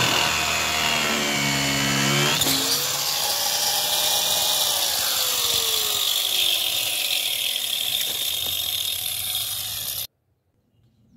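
A power grinder whines loudly as it cuts through a plastic pipe, then spins down.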